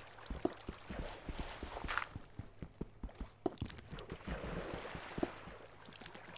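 Footsteps thud quickly on stone.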